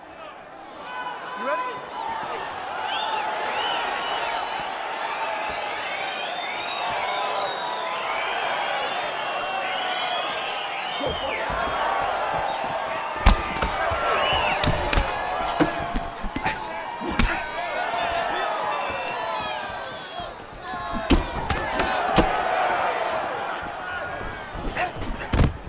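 A large crowd cheers and whistles loudly.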